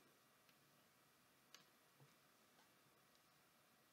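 A plastic wrapper crinkles softly.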